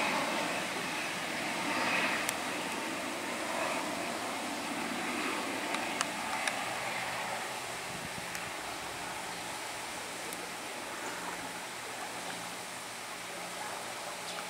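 An ATR 72 turboprop airliner drones overhead on its landing approach, propellers humming.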